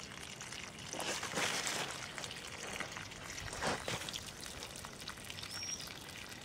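Water gushes from a hose and splashes onto the soil.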